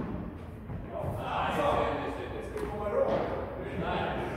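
Men talk briefly in a large echoing hall.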